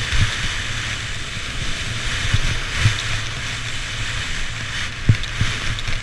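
Skis hiss and scrape steadily over packed snow.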